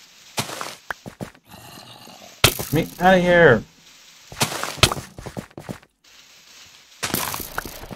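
Blocks crunch as they break.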